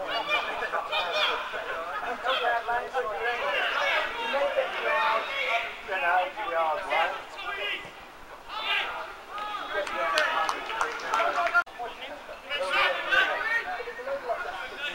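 Men shout and call out across an open sports field.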